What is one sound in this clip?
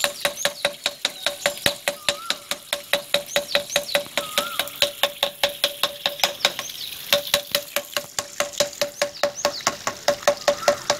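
Water pours from a pipe and splashes onto the ground.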